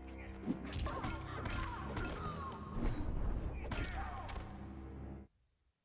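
Sharp whooshes and impacts crack out.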